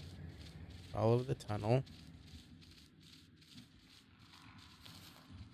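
An animal's paws pad softly over rocky ground.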